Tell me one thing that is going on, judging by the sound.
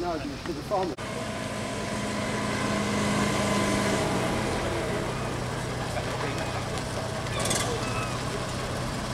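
A small car engine idles and hums as the car rolls slowly past.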